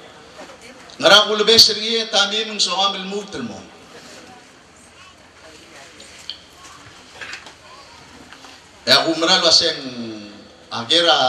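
A middle-aged man speaks loudly and forcefully into a microphone over loudspeakers, with pauses between phrases.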